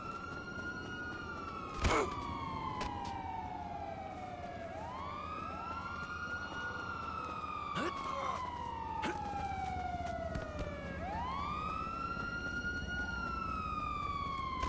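Footsteps run on hard ground and gravel.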